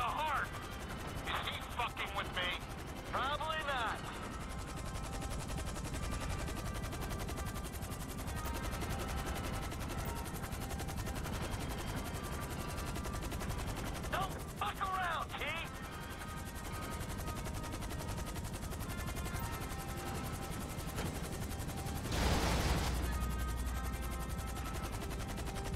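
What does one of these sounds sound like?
A helicopter's rotor thuds and its engine whines steadily overhead.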